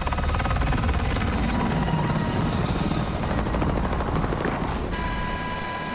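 A helicopter's rotor thumps and roars overhead.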